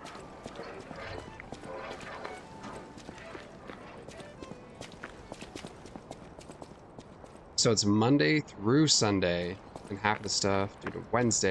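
Footsteps patter quickly on cobblestones.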